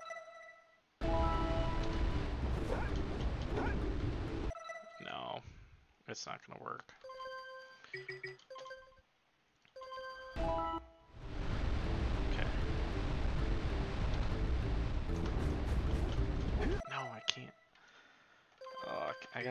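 Short electronic chimes beep as a menu opens and closes.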